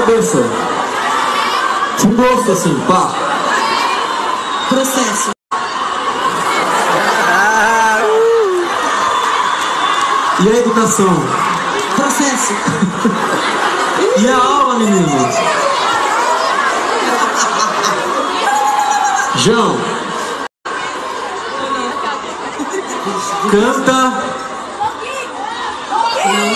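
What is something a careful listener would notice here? Young women scream and shriek nearby.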